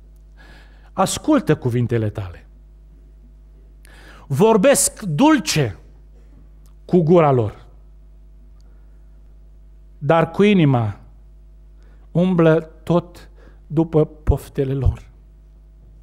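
A man speaks calmly into a microphone in a large echoing hall, in short phrases with pauses.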